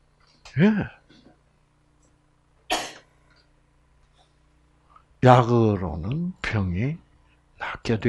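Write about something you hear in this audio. An elderly man speaks calmly in bursts with pauses, heard through a microphone in a room.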